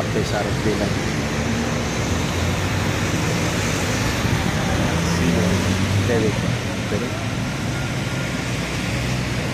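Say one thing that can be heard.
Traffic rumbles steadily along a wet road below.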